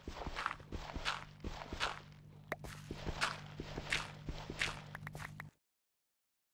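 Dirt crunches in quick, repeated digging blows.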